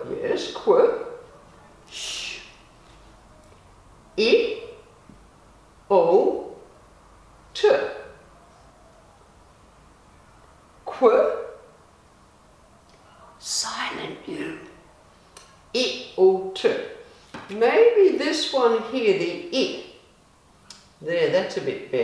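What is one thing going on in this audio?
A woman speaks slowly and clearly close by, sounding out single sounds with pauses.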